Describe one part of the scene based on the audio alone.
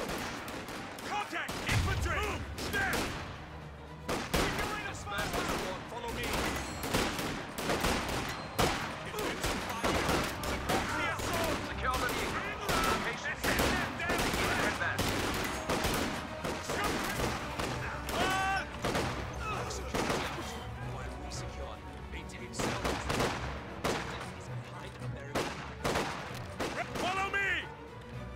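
Gunfire crackles in short bursts.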